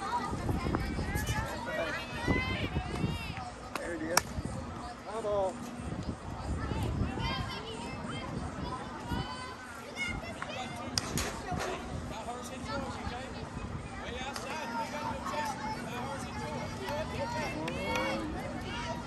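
Young women shout and call out outdoors across an open field.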